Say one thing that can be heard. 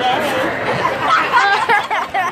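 A young girl shouts excitedly close by.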